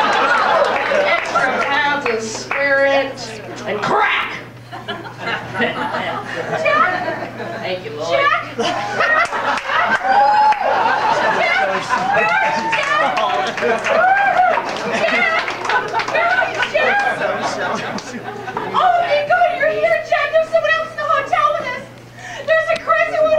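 A crowd of people chatter and talk over one another.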